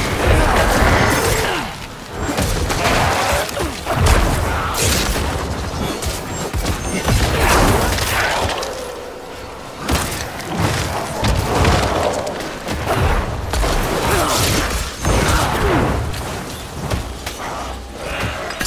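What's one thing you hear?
Magic spells crackle and explode in rapid bursts.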